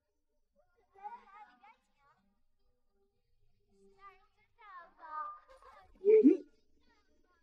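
A man speaks in a cheerful, inviting voice.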